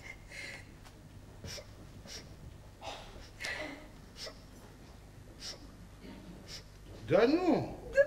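Paper rustles softly in a man's hands.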